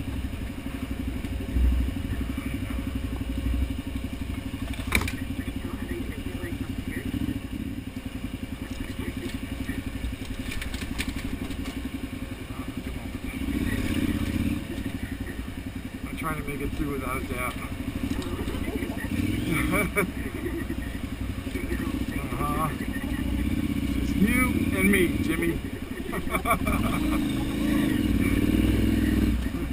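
A motorcycle engine putters steadily at low speed.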